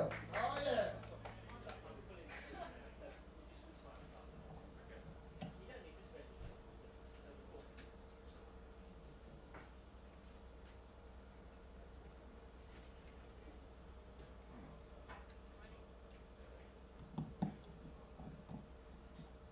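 An electric guitar is plucked through an amplifier in short, scattered notes.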